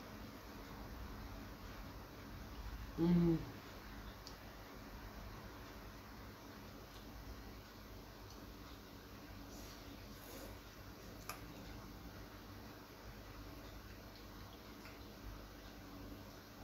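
A woman slurps noodles while eating.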